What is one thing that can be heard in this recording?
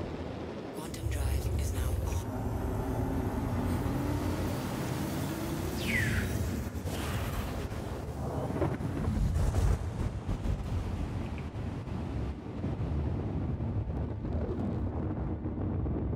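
A spaceship engine rumbles deeply and steadily.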